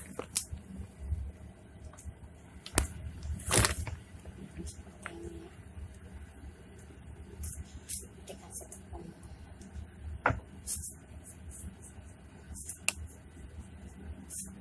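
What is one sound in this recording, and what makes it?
Plastic crinkles and rustles close by.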